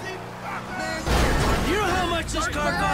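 A car crashes into another car with a loud thud.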